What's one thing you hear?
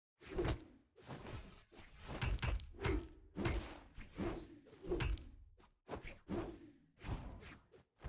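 Weapons strike with sharp hit sound effects in a video game fight.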